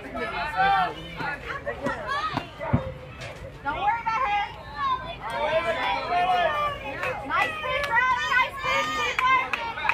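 Young girls shout and cheer loudly outdoors.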